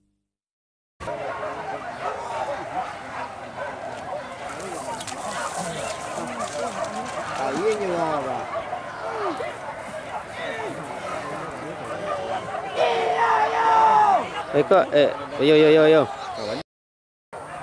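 A large outdoor crowd of men chatters and calls out.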